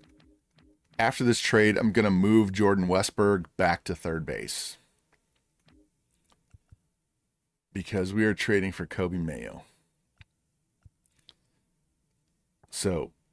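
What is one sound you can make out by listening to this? A man talks calmly and close into a microphone, in bursts with pauses.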